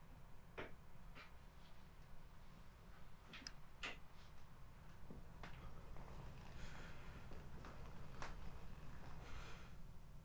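A middle-aged man speaks tensely, close by.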